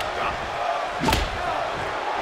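A loud thud of a blow lands.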